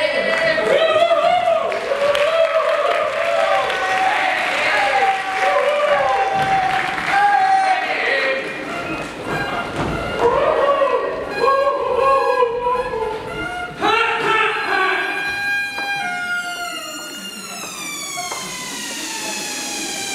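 Saxophones play a lively tune in an echoing hall.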